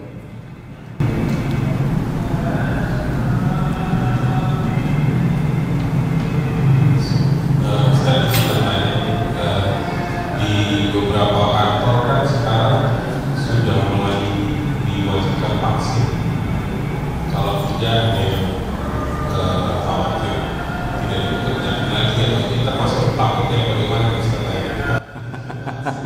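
A middle-aged man speaks with animation into a microphone.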